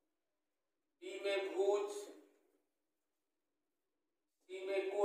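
A man speaks calmly and clearly, as if teaching, close by.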